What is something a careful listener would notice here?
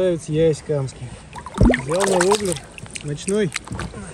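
Water splashes as a fish is released.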